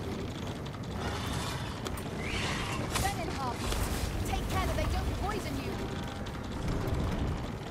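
A magic blast bursts with a crackling whoosh.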